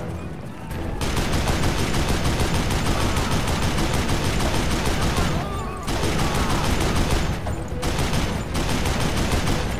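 A rotary machine gun fires in long, rapid bursts.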